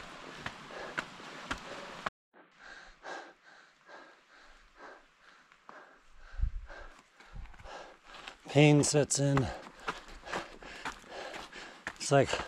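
Footsteps crunch on a rocky dirt trail.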